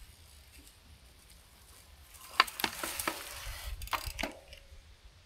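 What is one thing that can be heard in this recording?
Bicycle tyres roll over a dirt path and come closer.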